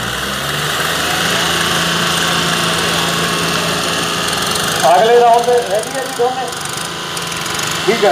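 Tractor engines roar loudly under strain.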